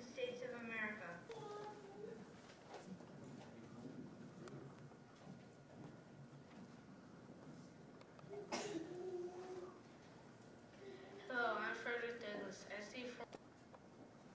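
A boy recites into a microphone in an echoing hall.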